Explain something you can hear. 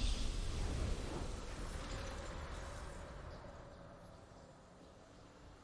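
A triumphant game fanfare rings out loudly and slowly fades.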